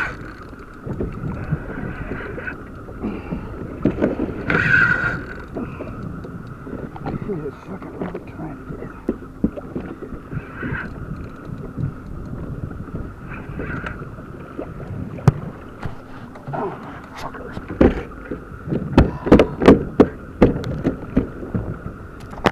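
Wind buffets the microphone outdoors on open water.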